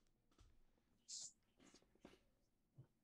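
Paper rustles briefly as a hand moves it.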